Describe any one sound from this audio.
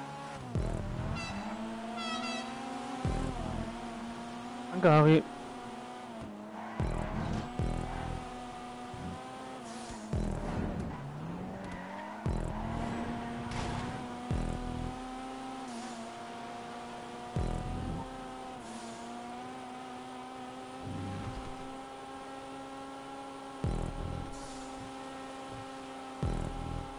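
A car engine revs and whines steadily, shifting pitch as the car drifts through corners.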